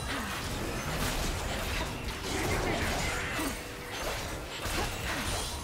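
Blows strike with sharp impacts.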